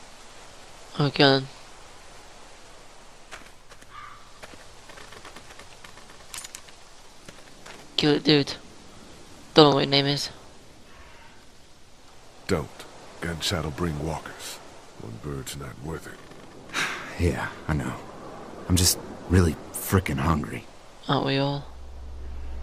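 A crow caws loudly.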